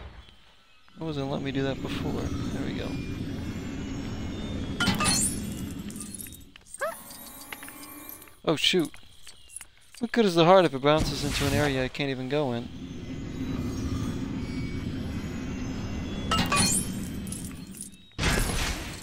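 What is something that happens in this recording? A magic spell hums and crackles steadily.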